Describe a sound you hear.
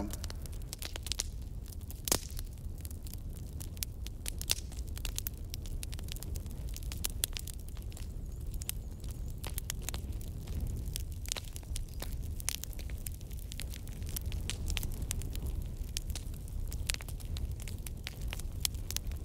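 A fire crackles and pops as it burns paper.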